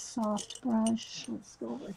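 Paintbrushes rattle against a glass jar.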